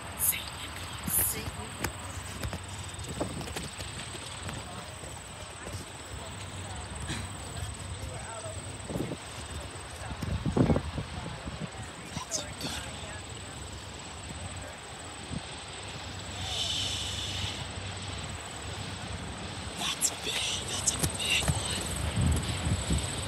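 Wind blows steadily outdoors, gusting against the microphone.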